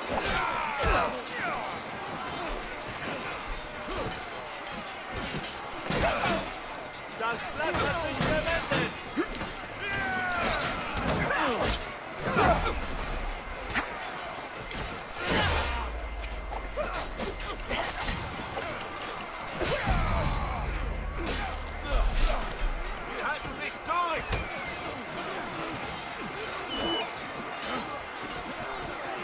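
Weapons clash and thud against shields.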